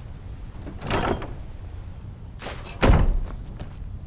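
A heavy wooden chest lid creaks open.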